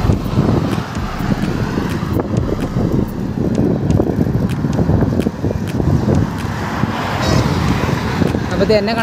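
Wind rushes loudly past a motorcycle riding along a road.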